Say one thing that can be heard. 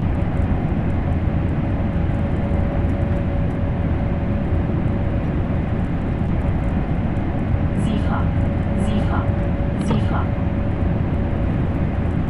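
A train rumbles steadily along the rails at high speed.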